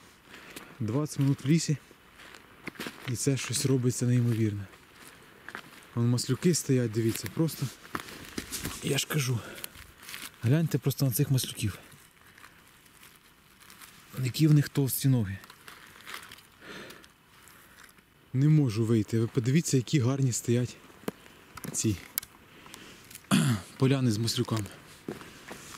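Footsteps crunch and rustle over dry needles and leaves.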